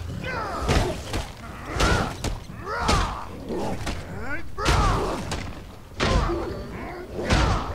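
Wolves snarl and yelp.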